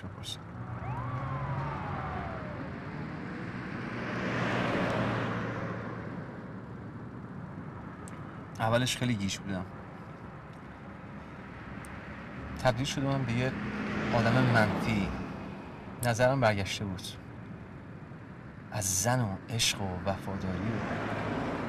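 A car engine hums steadily from inside the car.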